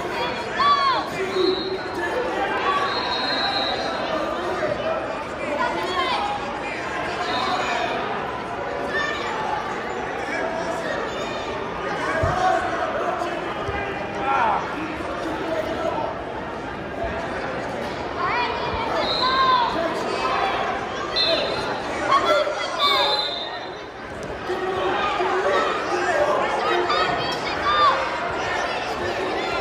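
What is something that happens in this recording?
Spectators shout encouragement loudly.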